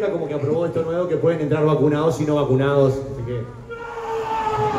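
A group of men and women sing together through loudspeakers.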